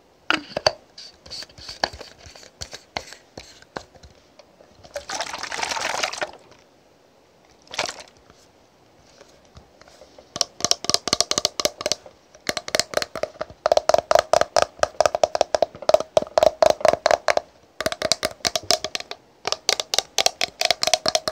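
Fingernails tap and click quickly on a plastic bottle, close up.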